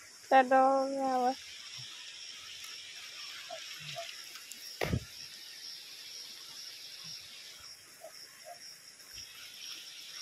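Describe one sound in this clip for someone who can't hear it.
Water splashes softly as hands move through it.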